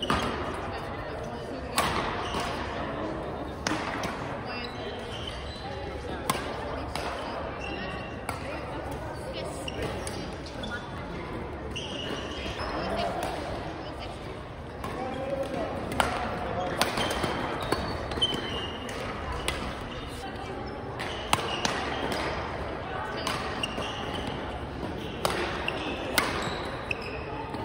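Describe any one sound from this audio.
Shoes squeak on the floor.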